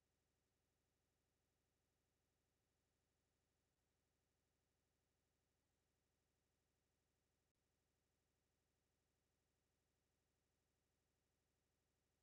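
A clock ticks steadily and faintly.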